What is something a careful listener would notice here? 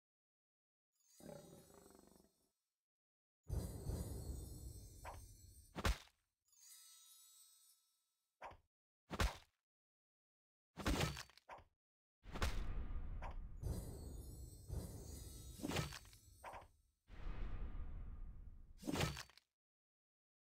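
Magic spells burst with loud whooshing blasts.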